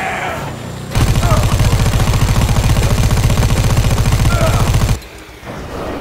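A heavy machine gun fires in a rapid burst.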